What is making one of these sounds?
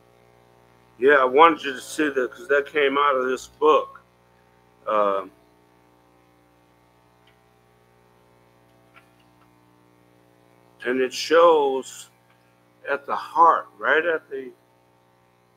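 An elderly man reads aloud slowly into a microphone, with long pauses.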